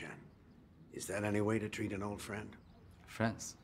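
An older man speaks calmly.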